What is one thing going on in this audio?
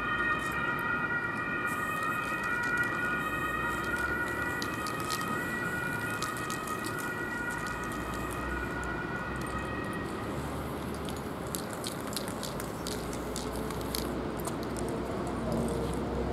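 Skateboard wheels roll and clack on concrete some distance away.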